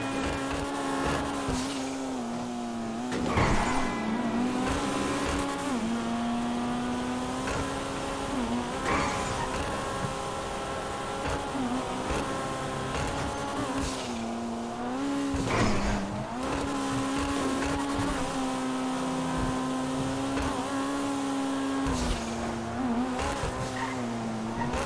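A car engine roars steadily, rising and dipping in pitch as the car speeds along.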